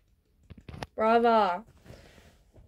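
A young woman lets out a long, drawn-out groan.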